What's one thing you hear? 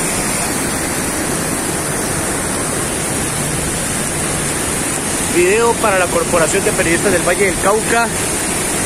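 Floodwater rushes and roars loudly.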